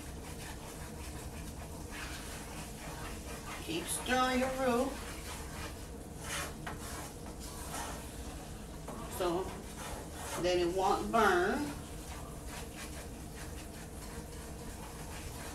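A wooden spoon scrapes and stirs food in a frying pan.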